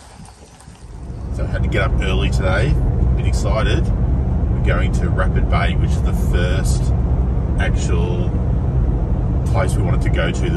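A car engine hums steadily with road rumble.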